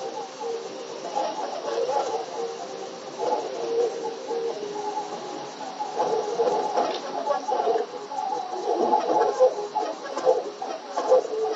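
Upbeat video game music plays.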